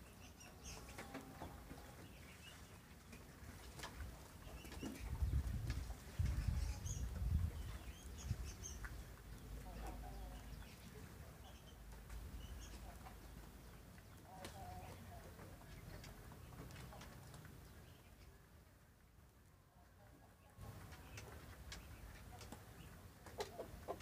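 Young chickens cheep and chirp softly.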